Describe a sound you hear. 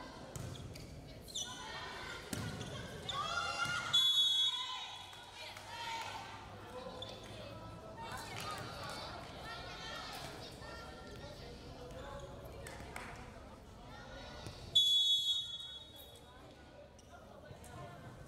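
Young women shout and call out across an echoing gym.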